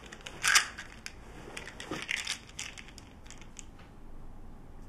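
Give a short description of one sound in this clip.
Fabric rustles and crinkles close by.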